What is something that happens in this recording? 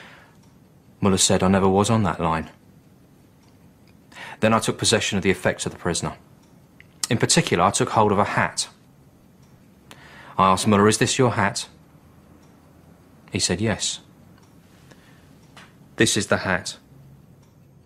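A man speaks calmly and quietly, close by, in short phrases with pauses.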